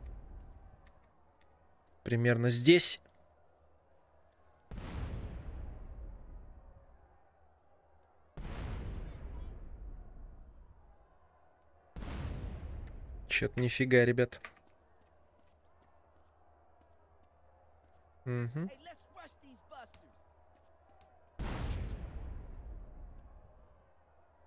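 Explosions boom at a distance, each rumbling and slowly fading.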